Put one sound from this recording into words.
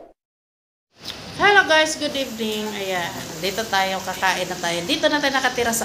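A middle-aged woman talks with animation close to the microphone.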